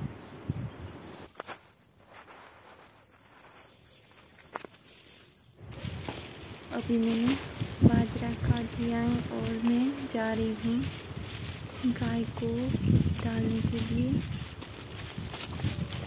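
Grass leaves brush and rustle close by.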